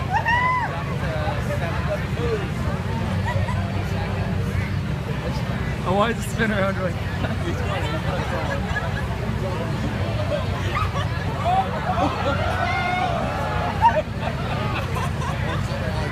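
A crowd chatters and calls out nearby outdoors.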